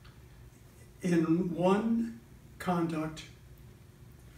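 An elderly man reads aloud nearby in short phrases.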